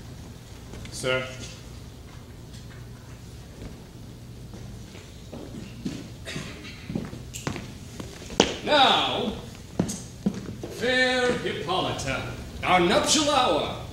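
A second man answers in a raised voice.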